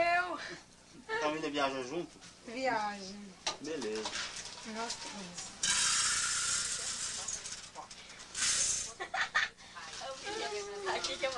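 A young woman laughs and talks with animation close by.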